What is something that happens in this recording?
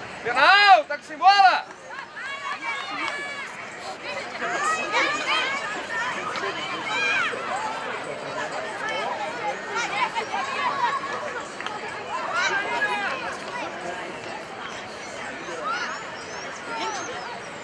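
Young women players shout and call out to each other on an open field.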